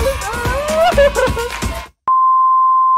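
A young woman laughs brightly close by.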